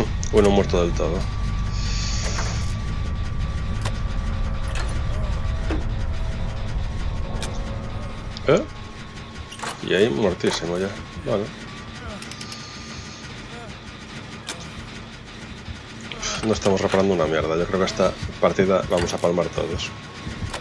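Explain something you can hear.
A machine's parts rattle and clank as hands work on them.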